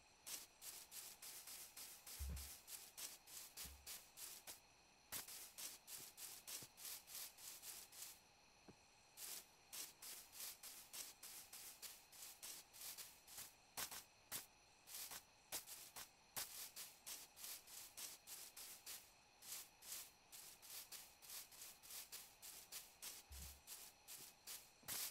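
Footsteps crunch quickly over grass.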